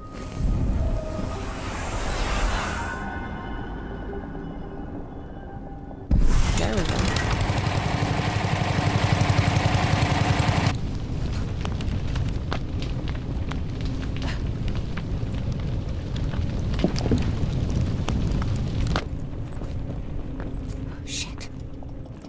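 Footsteps tread slowly on creaking boards and dirt.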